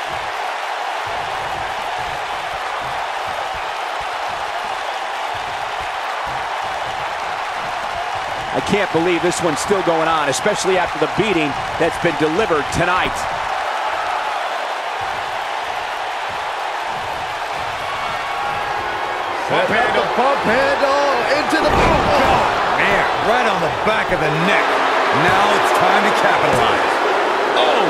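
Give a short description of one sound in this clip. A large crowd cheers steadily in an echoing arena.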